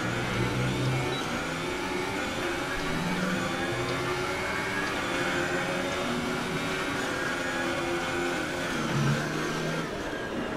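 A racing car engine roars and whines, its pitch rising and falling as it shifts gears.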